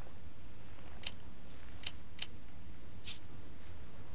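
Short sharp clicks tick in quick succession.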